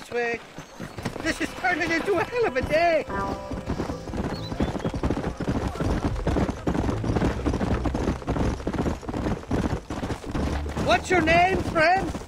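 Hooves clop steadily on a dirt road.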